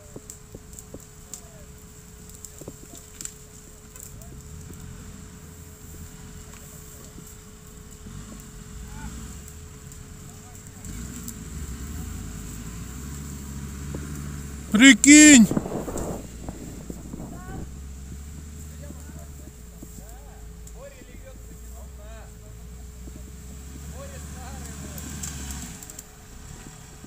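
An off-road vehicle's engine rumbles as it climbs through brush.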